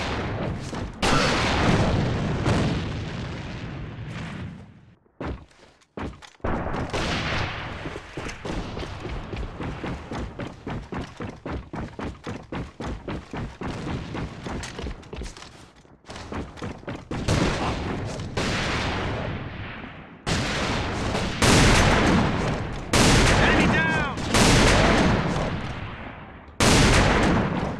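A sniper rifle fires loud single shots that echo.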